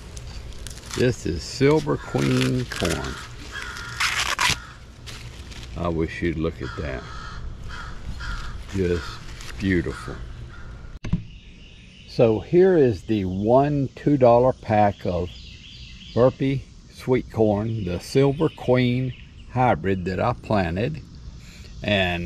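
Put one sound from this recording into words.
An older man talks calmly, close by.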